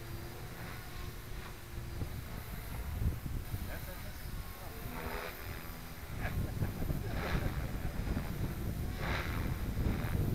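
A jet airliner roars faintly high overhead.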